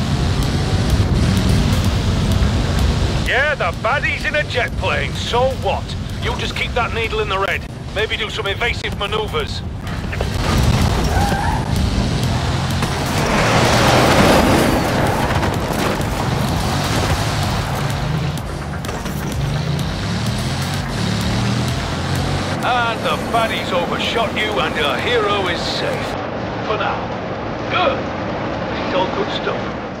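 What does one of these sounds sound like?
A sports car engine roars at high speed.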